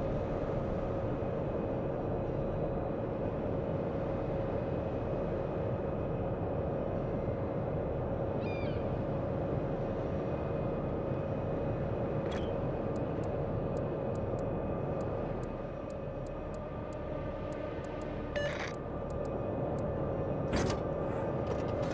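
Waves wash and splash against a moving ship.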